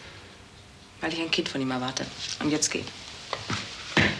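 A woman speaks quietly and calmly close by.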